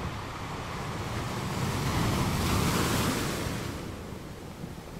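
Ocean waves roll in and crash onto rocks, swelling to a loud rush and then fading.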